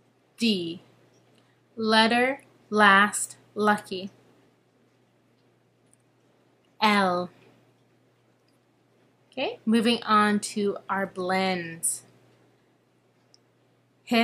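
A young woman speaks calmly and close up, with pauses.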